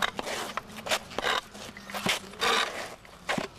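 Shoes scuff and shuffle on pavement.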